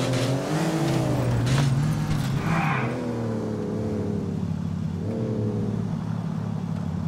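A sports car engine revs and rumbles loudly.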